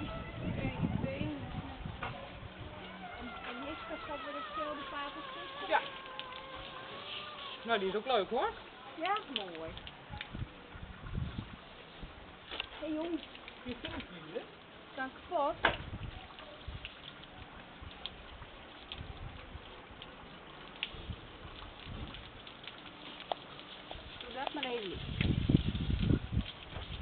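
Water from a hose splashes onto the ground.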